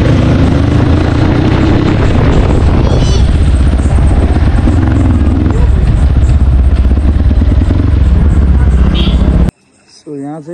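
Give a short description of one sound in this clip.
A motorcycle engine roars as the bike rides along a wet road.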